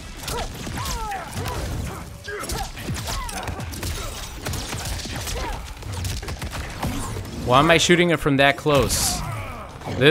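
Laser blasts fire with sharp zaps.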